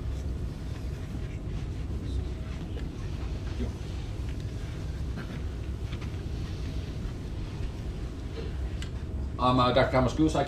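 People in an audience murmur quietly.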